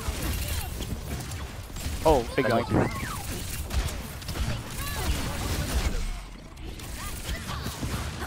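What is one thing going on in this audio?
Twin pistols fire rapid energy shots.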